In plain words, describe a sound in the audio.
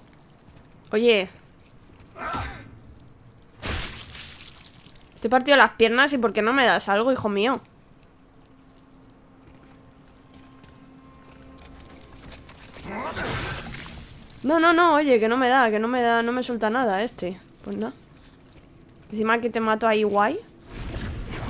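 A young woman talks with animation, close to a microphone.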